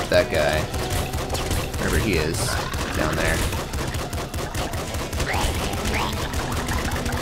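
Rapid game gunshots fire in quick bursts.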